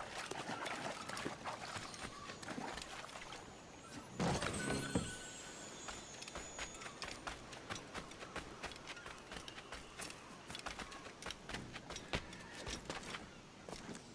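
Footsteps run quickly over sand and grass.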